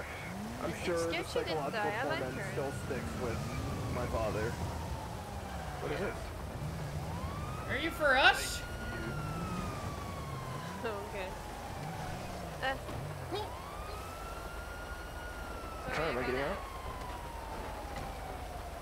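A police siren wails in long, slow falling sweeps.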